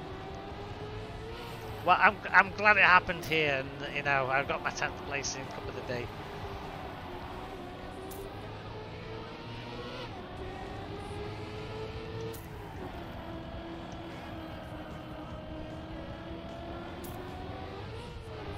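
A racing car engine hums and its pitch rises and falls steadily.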